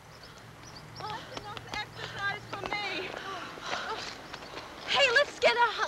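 Young women laugh and shout excitedly outdoors.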